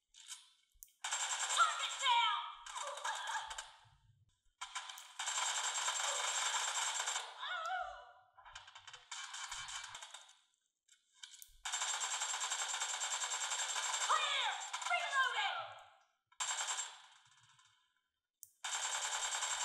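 Rapid gunfire bursts rattle from a phone's small speaker.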